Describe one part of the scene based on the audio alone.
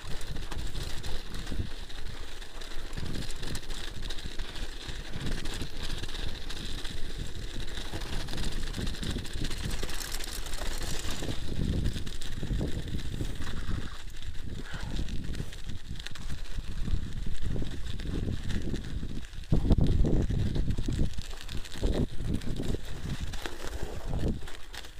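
Wind buffets and rumbles past close by.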